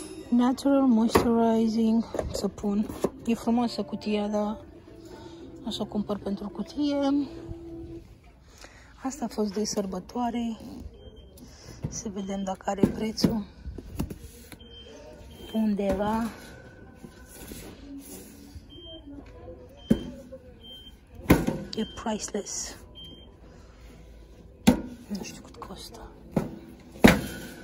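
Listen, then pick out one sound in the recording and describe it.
Plastic tubs and cardboard boxes are handled and knock against a metal shelf.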